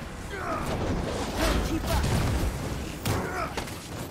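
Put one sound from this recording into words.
Explosions and blasts boom from a video game.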